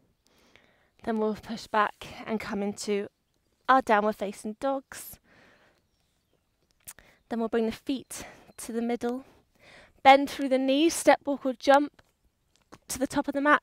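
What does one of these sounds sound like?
A young woman speaks calmly, close and clear.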